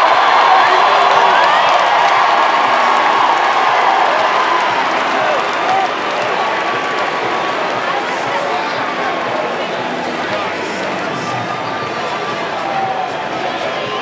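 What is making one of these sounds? A huge crowd cheers and roars in a large echoing arena, slowly easing off.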